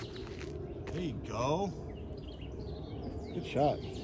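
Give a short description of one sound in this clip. Footsteps crunch on a dirt path outdoors.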